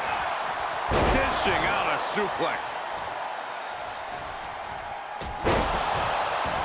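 Heavy thuds sound as wrestlers slam onto the mat.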